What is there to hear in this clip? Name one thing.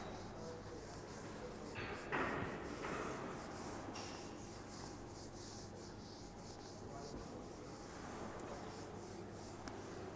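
A board eraser rubs and squeaks across a whiteboard.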